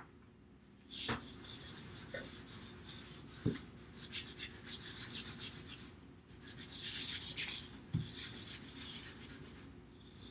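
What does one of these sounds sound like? A crayon scratches across paper.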